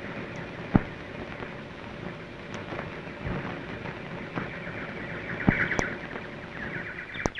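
A car engine hums as a car rolls slowly up a drive.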